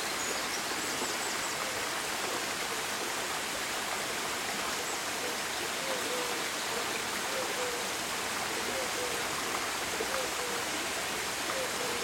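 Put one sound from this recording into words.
A small stream splashes steadily over rocks.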